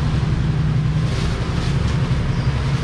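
A plastic bag rustles close by.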